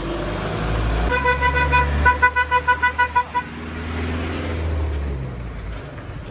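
A large motorhome engine rumbles as it drives past on a gravel road.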